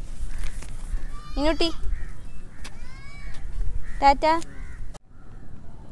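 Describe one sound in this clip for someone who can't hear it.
A toddler squeals and babbles nearby.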